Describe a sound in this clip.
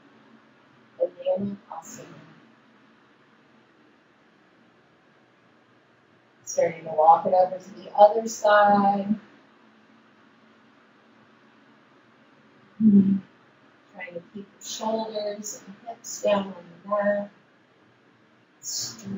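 A woman speaks calmly and slowly, close by.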